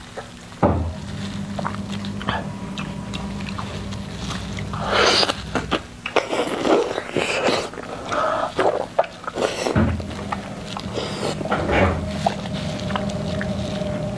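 Crusty bread crackles as it is torn apart by hand.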